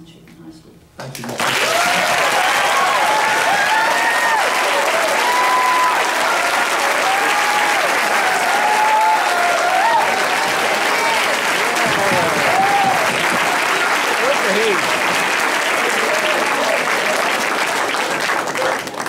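A large crowd claps and cheers loudly in an echoing hall.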